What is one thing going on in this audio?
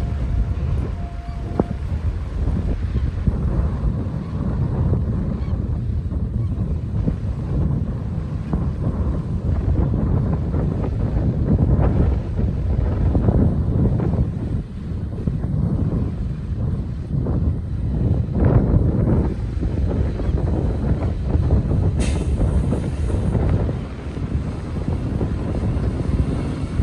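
Small waves lap gently on a sandy shore.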